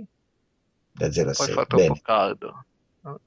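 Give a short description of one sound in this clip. A middle-aged man answers calmly, close to a headset microphone.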